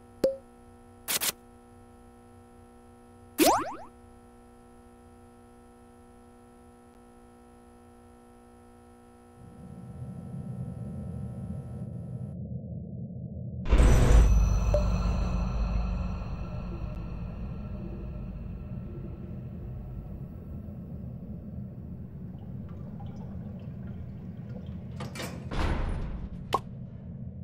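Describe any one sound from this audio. Soft electronic music plays steadily.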